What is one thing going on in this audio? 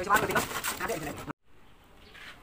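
Wet concrete scrapes and slides out of a metal wheelbarrow.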